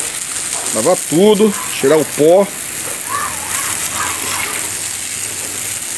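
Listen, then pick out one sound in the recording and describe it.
A jet of water hisses and splashes onto concrete.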